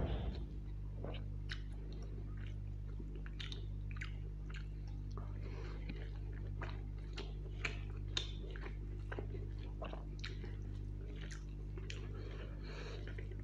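A man chews food wetly, close to the microphone.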